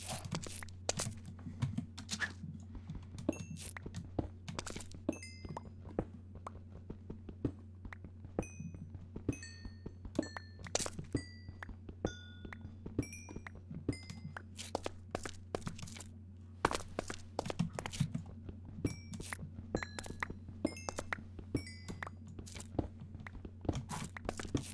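Stone blocks crumble and break apart.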